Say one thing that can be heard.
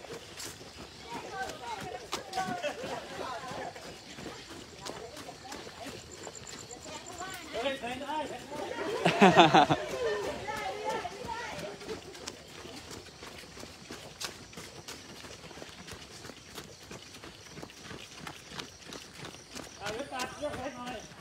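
Adult men and women talk and call out to one another outdoors.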